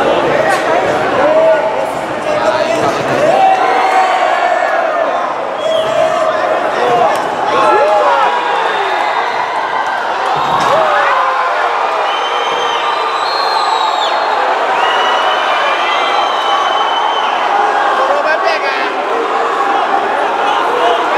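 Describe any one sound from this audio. A crowd shouts and cheers loudly around the fighters.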